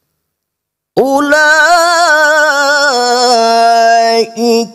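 A man chants in a long, wavering melodic voice through a microphone.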